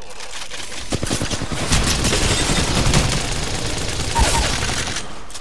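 Rapid gunfire crackles loudly in bursts.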